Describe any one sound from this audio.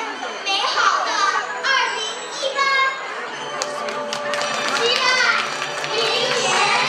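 A young girl sings into a microphone over a loudspeaker in an echoing hall.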